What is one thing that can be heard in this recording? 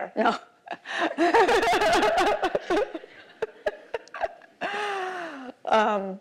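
A woman laughs heartily.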